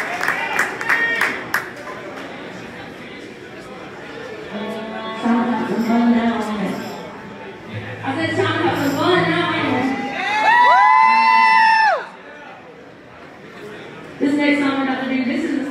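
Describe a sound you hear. A live band plays loudly through speakers in a reverberant room.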